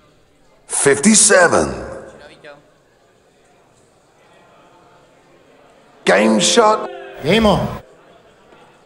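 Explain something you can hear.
A man calls out loudly through a microphone in a large hall.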